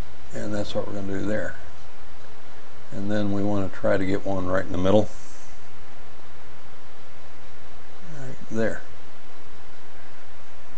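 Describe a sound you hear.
A paintbrush dabs softly on paper.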